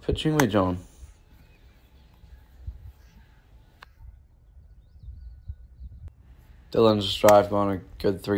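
A golf iron strikes a ball off turf with a sharp crack.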